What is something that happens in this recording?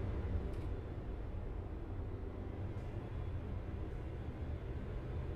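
A truck engine rumbles low and steady as it drives along.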